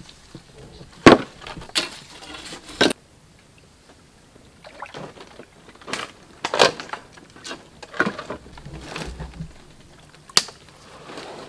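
Wooden poles knock against each other.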